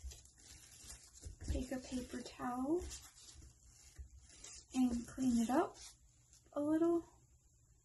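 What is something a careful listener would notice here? A paper tissue rustles as it is rubbed.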